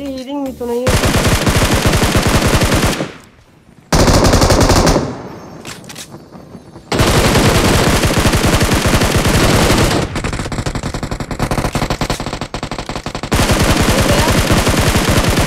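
A rifle fires in rapid bursts, close and loud.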